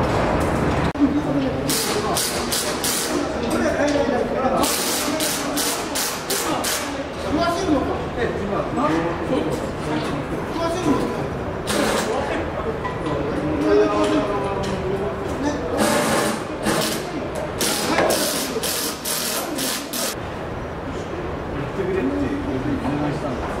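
Men talk to each other at a distance.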